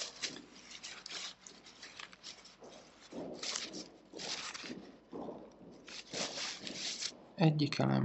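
A paper towel rustles and crinkles close by.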